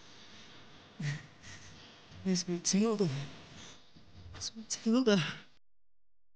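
A young man speaks.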